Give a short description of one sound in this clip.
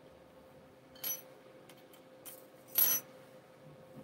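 Small wooden parts click together on a table.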